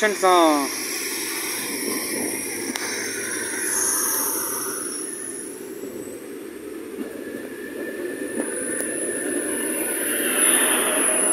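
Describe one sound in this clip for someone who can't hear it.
Train brakes or wheels squeal with a high, steady whine.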